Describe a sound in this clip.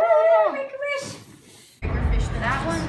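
A man blows out birthday candles.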